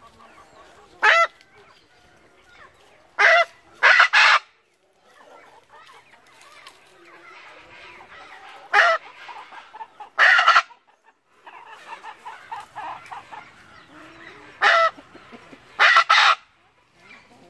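A bird calls out in loud, harsh bursts.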